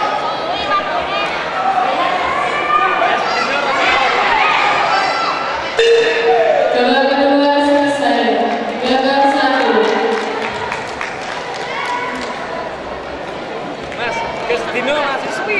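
A large crowd chatters and cheers loudly in a big echoing hall.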